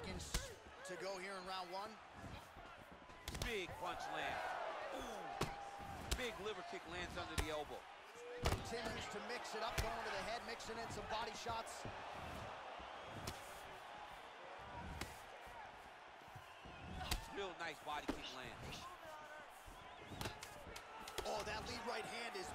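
Punches and kicks land on a body with dull thuds.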